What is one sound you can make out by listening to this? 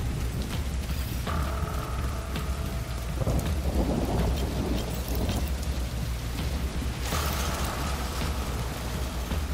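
Heavy footsteps run across a metal walkway.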